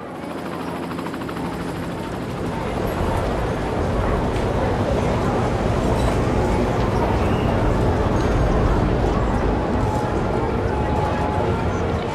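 City traffic hums steadily.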